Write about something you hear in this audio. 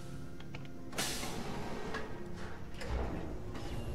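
A heavy metal door slides shut with a loud rushing whoosh.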